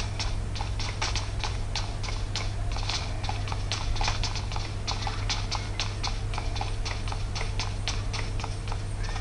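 Rapid gunfire sounds from a mobile shooting game.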